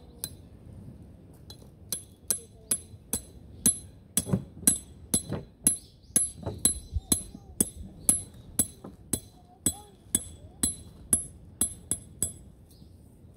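A knife chops steadily on a wooden board nearby.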